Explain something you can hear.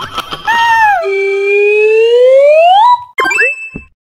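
A rising electronic whoosh plays as a game character slides down a pole.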